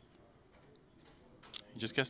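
Poker chips click together in a man's hands.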